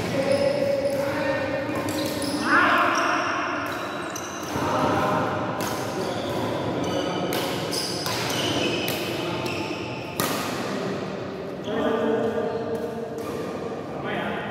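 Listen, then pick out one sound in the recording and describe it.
Shoes squeak on a court floor.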